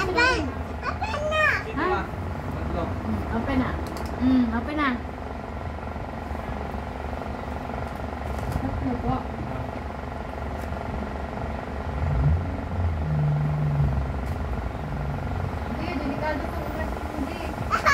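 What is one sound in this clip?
A young child babbles and squeals up close.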